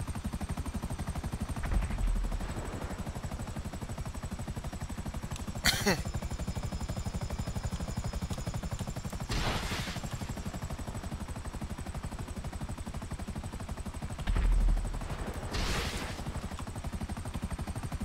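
Helicopter rotors thump steadily overhead.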